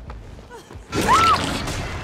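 A blade swings and slashes with a sharp swoosh.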